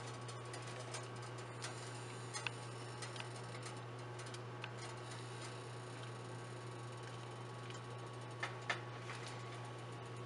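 Liquid bubbles softly in a pot.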